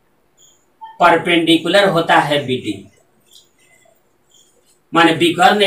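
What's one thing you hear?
A man speaks calmly and steadily, as if explaining a lesson.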